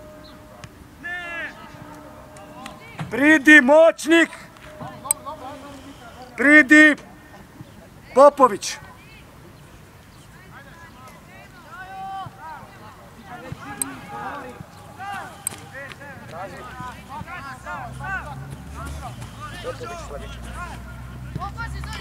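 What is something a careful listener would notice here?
Young players shout loudly to each other across an outdoor field.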